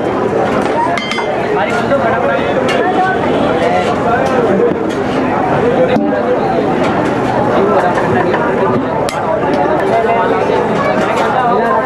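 A metal ladle scrapes and taps on a hot griddle.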